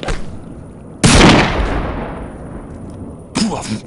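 A rifle fires a loud shot that echoes away.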